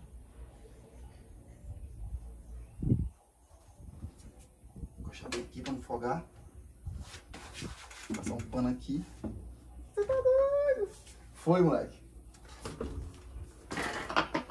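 Bicycle parts click and rattle as a man handles a bike.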